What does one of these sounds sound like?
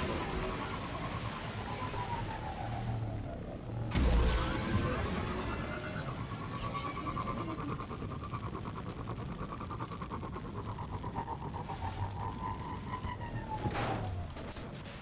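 A hover bike engine hums and whines, rising and falling in pitch.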